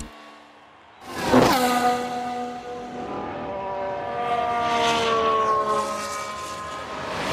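A racing car roars past with a rising then falling whine.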